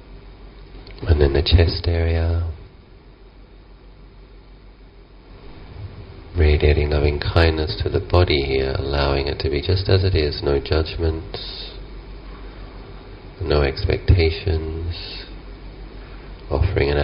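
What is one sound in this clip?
A man speaks calmly into a microphone, close by, with pauses.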